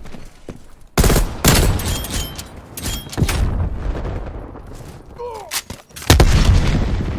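Gunshots crack loudly, one after another.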